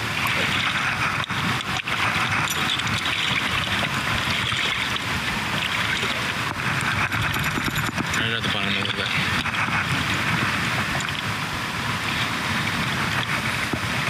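Water laps and splashes against rocks outdoors.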